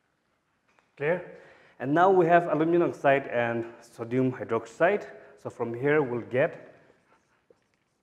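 A man speaks clearly and calmly, as if explaining a lesson.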